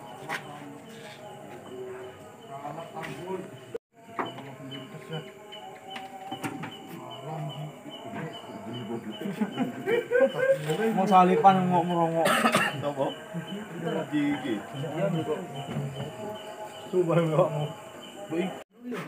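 Several men talk and call out loudly nearby, outdoors.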